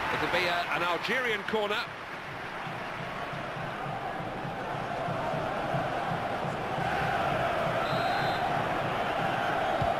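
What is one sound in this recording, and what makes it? A stadium crowd roars and cheers steadily in the distance.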